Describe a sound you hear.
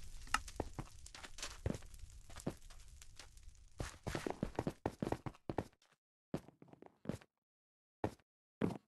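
Quick footsteps patter on blocks in a video game.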